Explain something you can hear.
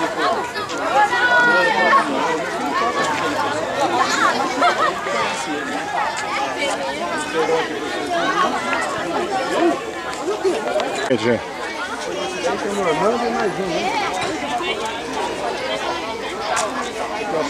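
A crowd of men and women chatter and call out close by outdoors.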